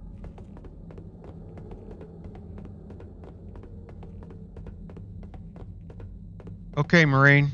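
Heavy boots step steadily on a metal floor.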